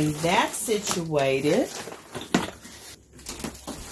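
Plastic wrapping crinkles in a hand.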